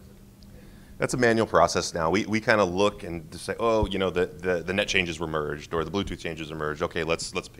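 A man speaks calmly and at length through a microphone.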